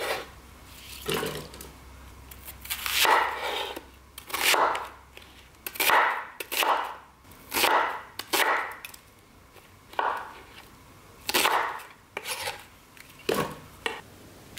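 A knife chops through an onion onto a wooden board.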